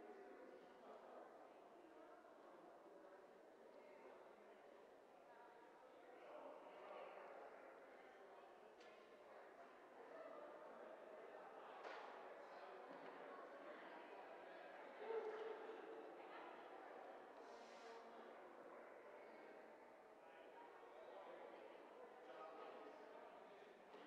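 Men and women murmur and chat in the distance in a large echoing hall.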